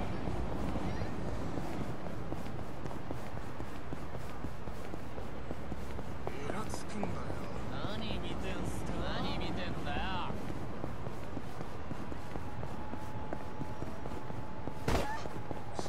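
Footsteps patter quickly on pavement as men run.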